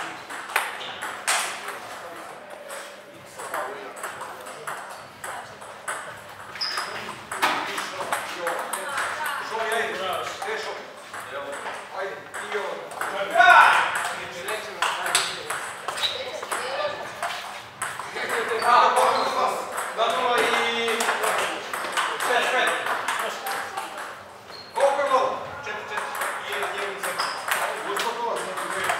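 A table tennis paddle strikes a ball.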